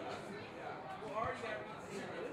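A boot thumps a ball in a kick.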